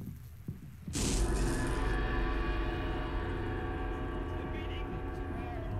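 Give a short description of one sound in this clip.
An eerie musical drone swells in and holds.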